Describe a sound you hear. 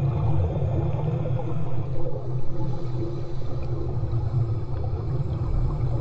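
A woman breathes heavily through a snorkel mask close by.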